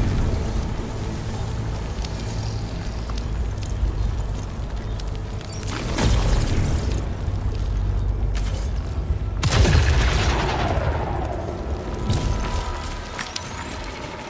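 A low, steady rumble drones on.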